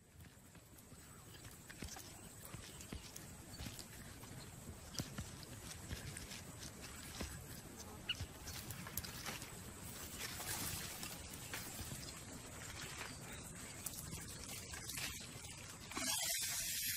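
Branches rustle and creak as an animal climbs through a tree.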